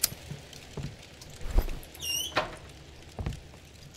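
A fire crackles softly in a stove.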